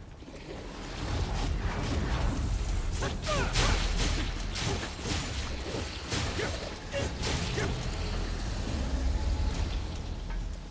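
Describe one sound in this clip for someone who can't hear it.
Blades clash and slash in a fierce fight.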